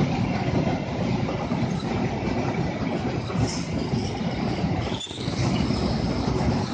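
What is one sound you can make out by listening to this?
A long freight train rumbles and clatters past on the rails close by.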